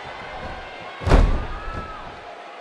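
A wrestler's body thuds onto a ring mat.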